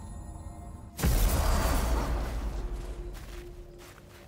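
A loud whoosh bursts out and slowly fades.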